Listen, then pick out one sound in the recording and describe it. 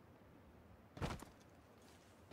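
A heavy thud sounds as a person lands from a jump.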